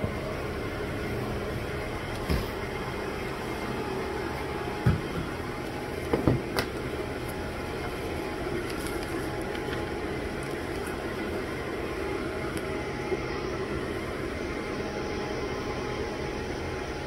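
Equipment hums steadily in the background.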